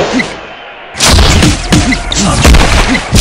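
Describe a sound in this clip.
Heavy punches land with loud thuds.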